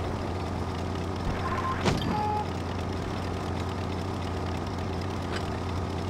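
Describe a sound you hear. A heavy tank's engine idles with a low rumble.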